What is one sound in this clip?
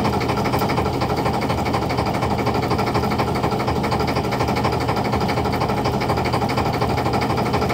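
A motor hauler whirs and rattles steadily close by.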